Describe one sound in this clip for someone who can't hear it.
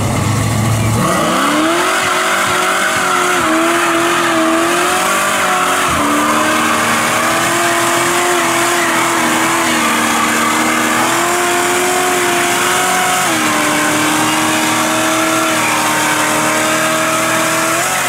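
Tyres screech and squeal as they spin on the road.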